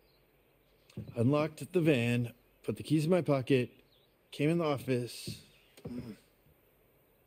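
A man speaks calmly and firmly at close range.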